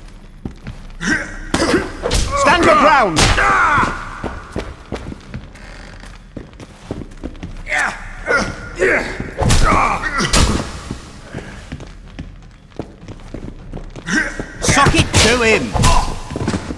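Men grunt and shout with effort while fighting.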